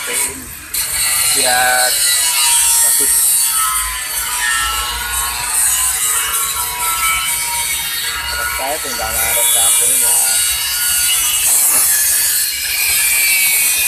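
An angle grinder cuts into sheet metal with a loud, harsh screech.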